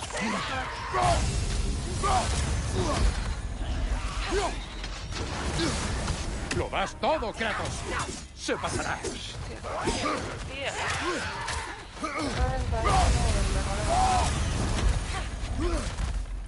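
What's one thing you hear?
Fire roars around a glowing warrior.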